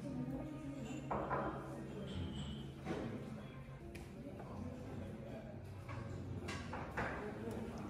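Porcelain dishes clink on a tray.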